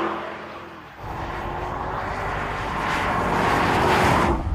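A V8 SUV approaches and grows louder.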